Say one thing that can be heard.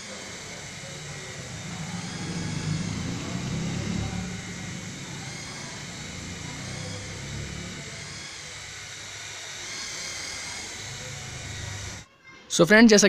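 A toy helicopter's rotor whirs and buzzes as it flies.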